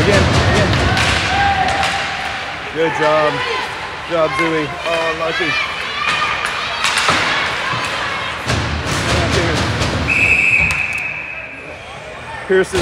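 Ice skates scrape and hiss across the ice in an echoing rink.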